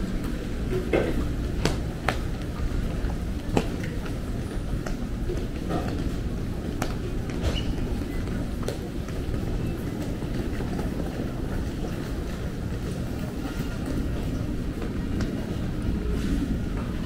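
Footsteps click on a hard floor.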